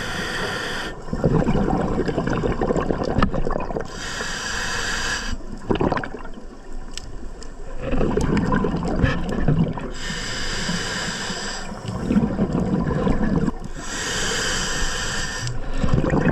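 Exhaled bubbles rumble and gurgle underwater.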